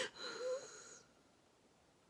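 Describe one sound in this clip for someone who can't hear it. A middle-aged woman wails in a sobbing cry close by.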